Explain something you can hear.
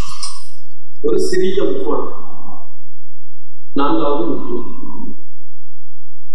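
A man speaks clearly into a microphone, close by.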